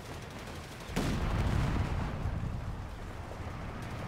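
An explosion booms with a deep rumble that slowly fades.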